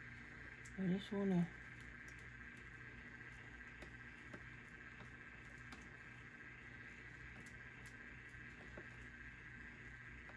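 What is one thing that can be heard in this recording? A wooden stick scrapes and taps softly against a paper cup.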